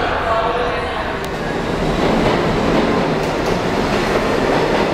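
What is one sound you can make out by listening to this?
A subway train rushes past with a loud rumble.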